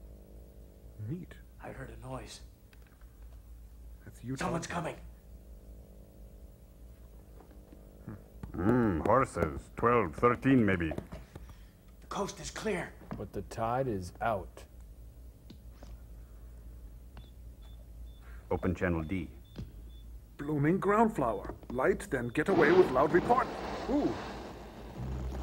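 A man makes joking remarks close by.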